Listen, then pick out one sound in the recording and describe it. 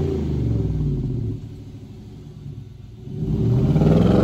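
A truck engine idles with a deep rumble.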